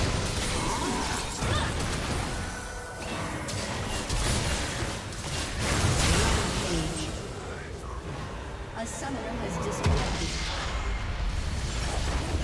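Game spells and attacks crackle and clash in a busy fight.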